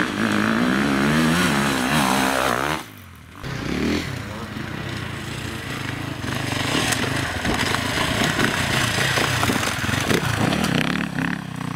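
Tyres crunch and spray over loose stones.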